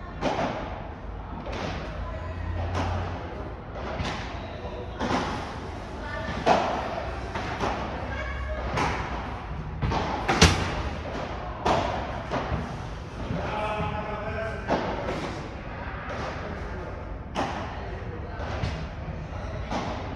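A ball bounces on the court.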